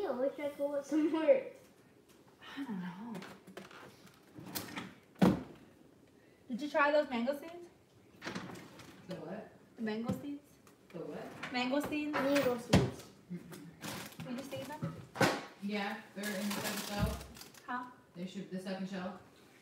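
Bottles and jars clink as a woman rummages in a refrigerator.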